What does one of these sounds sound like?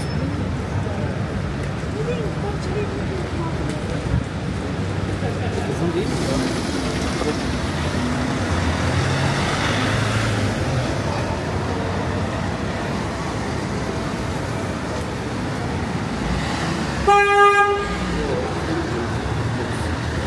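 City traffic hums steadily along a street.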